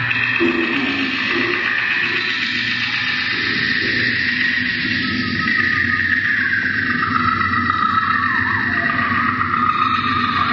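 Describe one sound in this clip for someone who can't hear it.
A man sings softly into a microphone.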